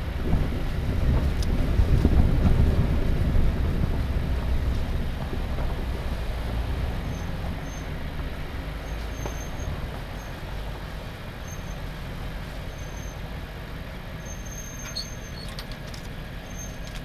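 A vehicle engine rumbles low and steady as it crawls along a rough trail.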